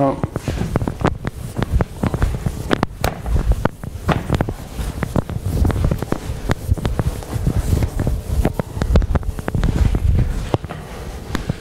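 An eraser rubs across a chalkboard.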